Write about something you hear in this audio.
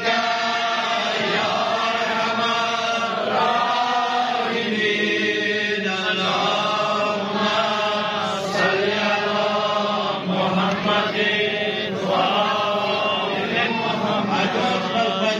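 A group of men chant together in unison through a microphone.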